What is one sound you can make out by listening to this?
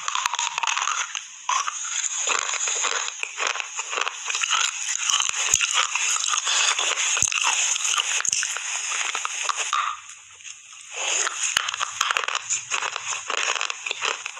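A woman chews crunchy food loudly and wetly very close to a microphone.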